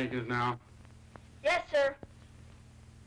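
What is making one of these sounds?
A young boy speaks briefly.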